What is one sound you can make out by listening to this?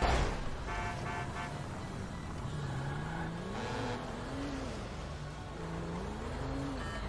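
A car engine hums and revs as it drives along a road.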